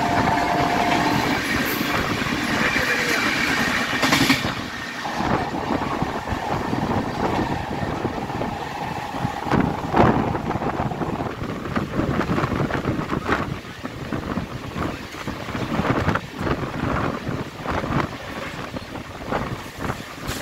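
A train rumbles and clatters along the rails at speed.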